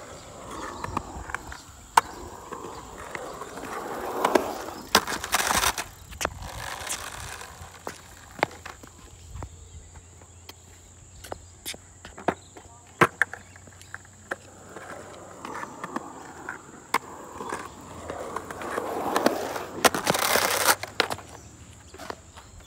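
A skateboard clacks and knocks sharply against the ground.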